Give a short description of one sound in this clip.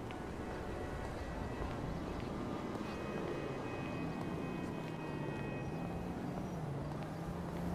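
Footsteps tread steadily on pavement.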